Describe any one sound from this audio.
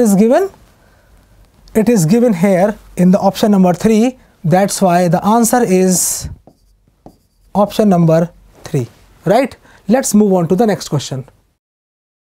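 A man explains calmly and clearly, close to a microphone.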